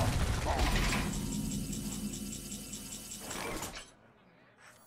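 A bright chime rings out as a new turn begins.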